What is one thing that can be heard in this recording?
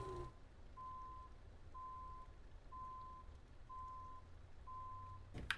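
A truck's reversing alarm beeps at a steady, even pace.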